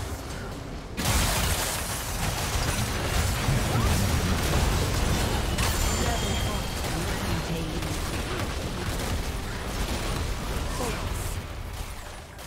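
Magic blasts and whooshes crash and rumble in a busy fight.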